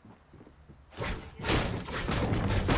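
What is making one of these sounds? A pickaxe strikes wood.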